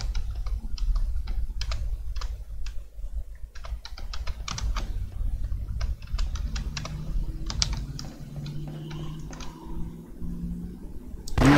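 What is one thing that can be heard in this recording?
Footsteps clank on a metal grate floor.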